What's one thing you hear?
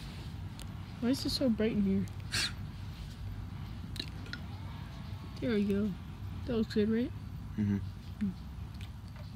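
A teenage boy speaks close by in short bursts.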